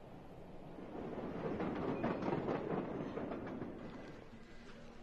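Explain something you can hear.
A tram rolls past.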